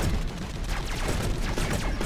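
A laser gun fires in short bursts.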